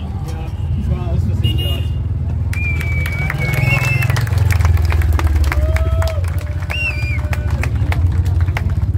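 A large crowd cheers and whistles outdoors.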